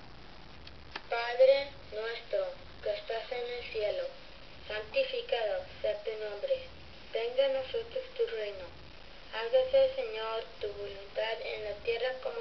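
A young child's recorded voice sings from a small, tinny loudspeaker in a toy clock.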